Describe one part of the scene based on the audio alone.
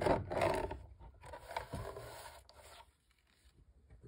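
A paper trimmer blade slides down and cuts through paper.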